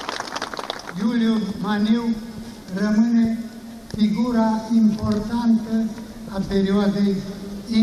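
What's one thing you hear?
An elderly man speaks forcefully into a microphone, heard through a loudspeaker outdoors.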